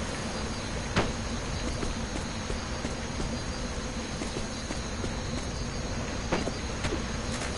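Short sharp thuds sound now and then.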